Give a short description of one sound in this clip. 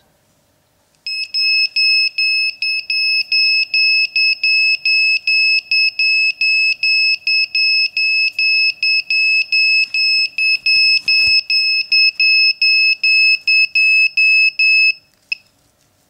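An electronic buzzer beeps in a rapid, steady series of high beeps.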